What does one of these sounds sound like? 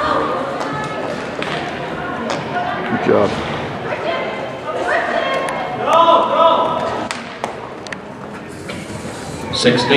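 A horse gallops, its hooves thudding on soft dirt in a large echoing hall.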